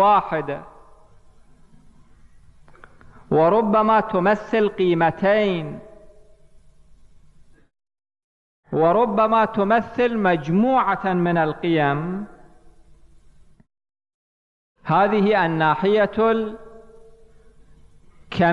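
A man speaks slowly and with feeling through a microphone, in phrases with long pauses.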